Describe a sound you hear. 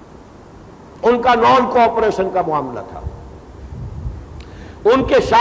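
An elderly man speaks with emphasis into a microphone.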